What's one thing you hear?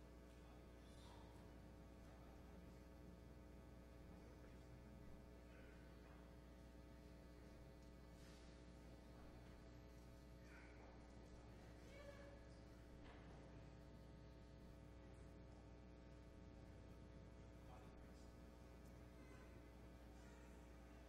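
People shift and rustle quietly in a large echoing hall.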